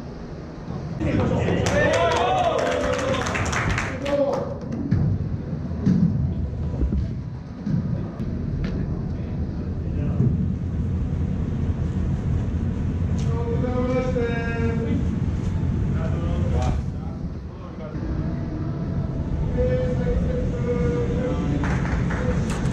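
Young men talk and call out to each other in an echoing indoor space.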